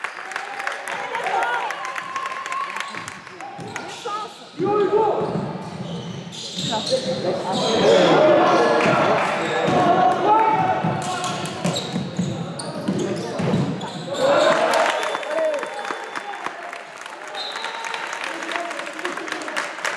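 A man shouts instructions loudly in an echoing hall.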